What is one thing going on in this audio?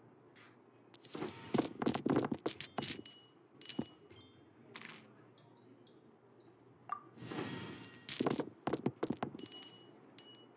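Dice clatter and tumble across a table.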